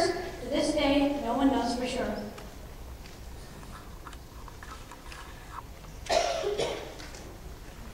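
A young girl speaks into a microphone, heard through loudspeakers in a large hall.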